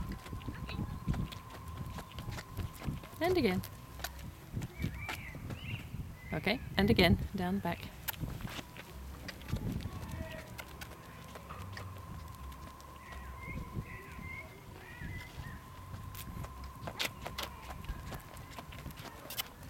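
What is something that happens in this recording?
Footsteps walk steadily on asphalt.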